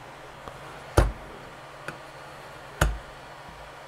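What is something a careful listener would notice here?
A hard tile knocks lightly against a counter.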